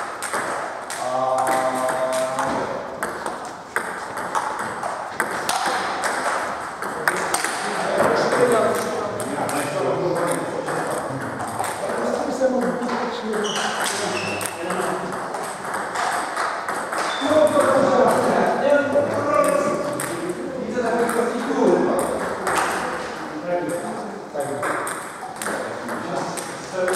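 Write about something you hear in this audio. Men talk and call out nearby, echoing in a large hall.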